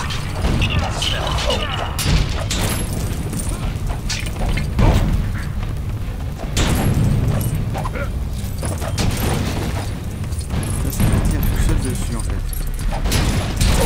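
Cannons fire with loud booms.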